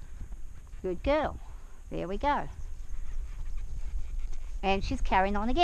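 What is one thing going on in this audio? A horse's hooves thud softly on dirt as it walks.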